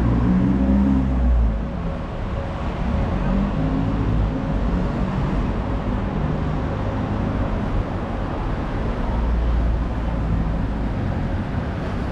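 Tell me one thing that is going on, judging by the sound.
Cars drive past on a city street.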